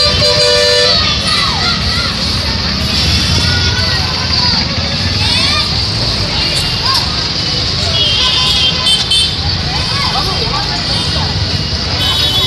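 Traffic rumbles past on a busy road.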